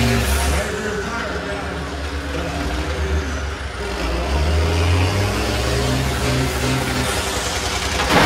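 Tyres grind and spin in the mud.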